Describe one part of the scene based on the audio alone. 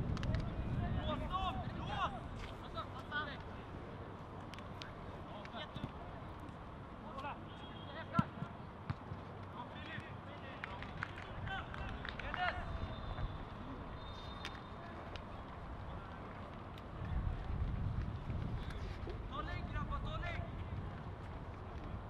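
Young players shout to each other in the distance across an open field.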